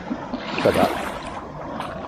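A bare foot splashes in shallow water.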